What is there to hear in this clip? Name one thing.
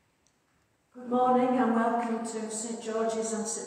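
An older woman sings loudly in a large echoing hall.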